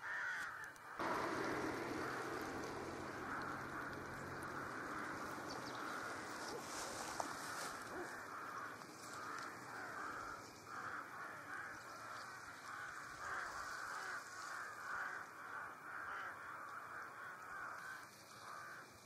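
Ice floes scrape and tinkle softly as they drift along a river.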